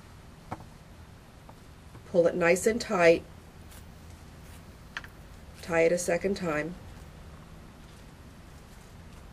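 Cellophane crinkles softly as hands fold it.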